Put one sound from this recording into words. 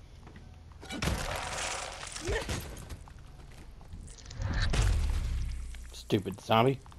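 A bat smashes wetly into flesh with heavy, squelching blows.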